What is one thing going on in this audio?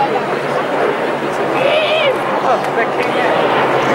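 Aircraft engines roar overhead.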